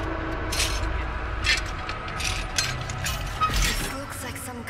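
Hands rummage and clatter through metal objects.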